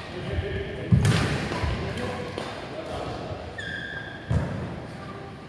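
A racket smacks a shuttlecock in an echoing hall.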